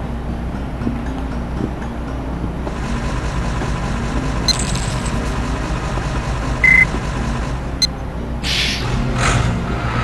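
A bus engine idles with a low, steady rumble.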